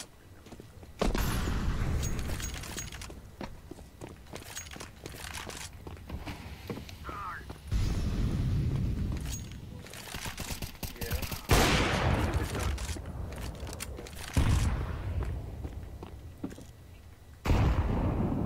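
Sniper rifle shots boom.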